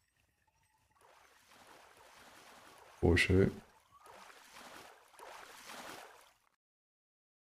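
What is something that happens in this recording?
A fishing reel whirs as the line is wound in.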